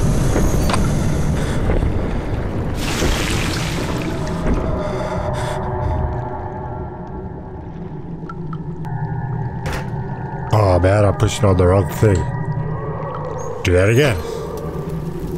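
A young man talks into a microphone, close up and with animation.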